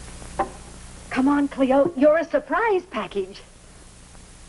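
A woman talks with animation.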